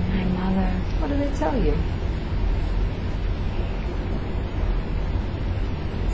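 A woman breathes softly and slowly in her sleep.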